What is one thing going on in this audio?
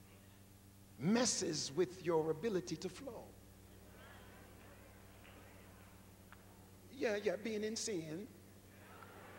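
A middle-aged man speaks with animation into a microphone, his voice echoing in a large hall.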